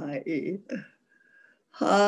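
An elderly woman laughs.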